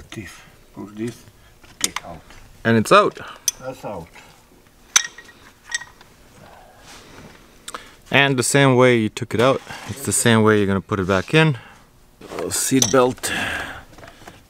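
A hand tool clicks against metal.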